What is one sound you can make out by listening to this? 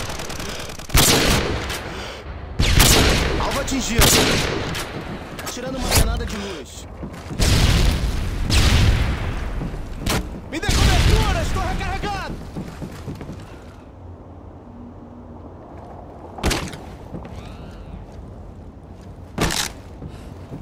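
A sniper rifle fires loud, booming shots that echo away.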